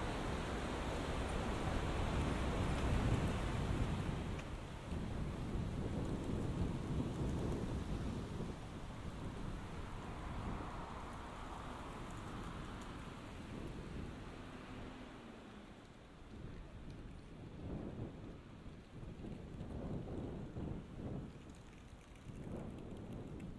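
City traffic rumbles in the distance outdoors.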